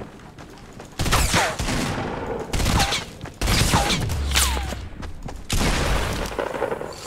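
Gunshots from a video game crack loudly in quick bursts.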